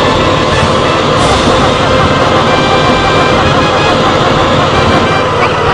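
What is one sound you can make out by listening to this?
A truck engine rumbles and sputters.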